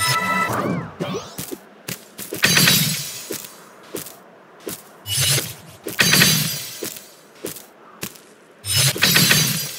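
A game character lands and jumps with short clicks.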